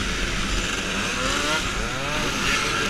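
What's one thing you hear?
A scooter engine revs up and down.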